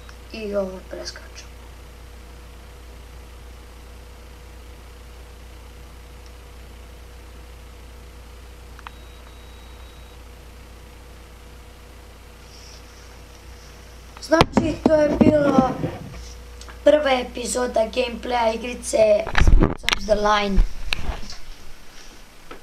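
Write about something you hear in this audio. A young boy talks with animation close to a microphone.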